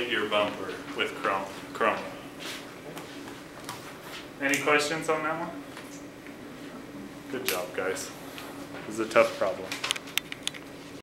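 A man speaks calmly, as if lecturing, in a slightly echoing room.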